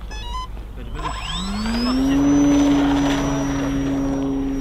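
A small model aircraft engine starts, revs up high and holds a steady buzzing whine.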